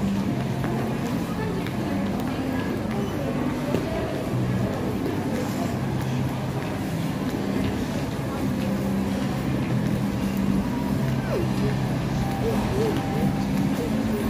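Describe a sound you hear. A crowd murmurs in the distance in a large echoing hall.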